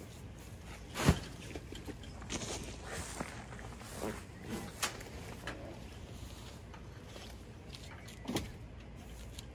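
Bags thud and clank as they are loaded onto a trailer.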